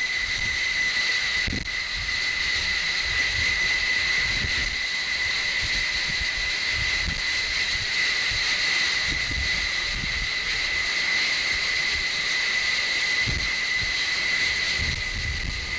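A jet engine roars loudly and steadily close by, with a high whine.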